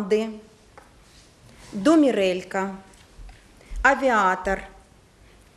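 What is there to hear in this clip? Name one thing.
A middle-aged woman speaks with animation into a microphone, in short bursts with pauses.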